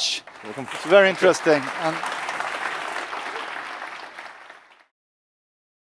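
An audience applauds and the applause fades away.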